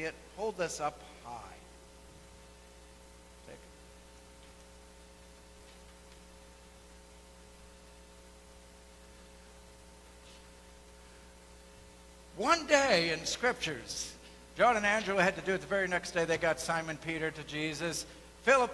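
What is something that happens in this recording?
A man speaks at a distance in a large echoing hall.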